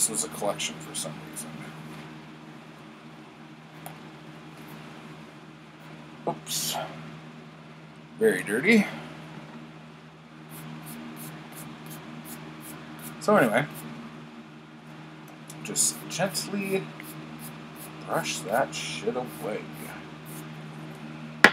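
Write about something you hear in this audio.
Paper pages rustle and flip.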